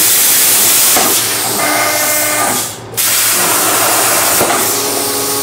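Machine motors whine as the cutting head moves.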